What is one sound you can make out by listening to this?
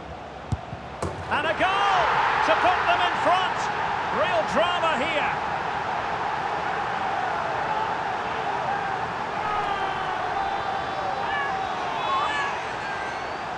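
A stadium crowd roars and cheers loudly.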